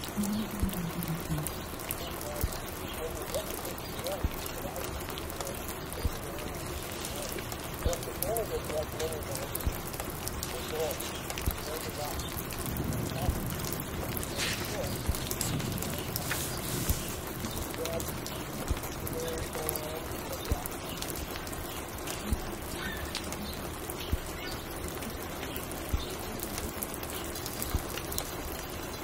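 A vinyl record crackles and pops steadily on a turntable.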